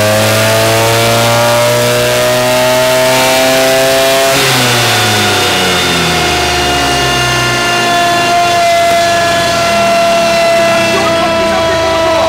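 A scooter engine runs loudly on a test stand, its pitch rising and then dropping.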